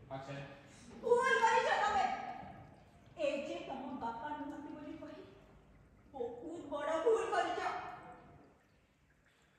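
A woman speaks with emotion, close by.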